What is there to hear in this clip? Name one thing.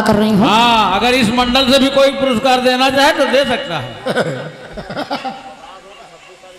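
A young woman sings into a microphone, heard through loudspeakers, then her voice fades.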